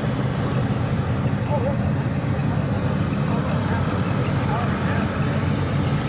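A vintage car's engine burbles low as it drives slowly by.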